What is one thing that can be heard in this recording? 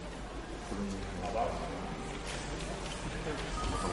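Paper sheets rustle in a man's hands.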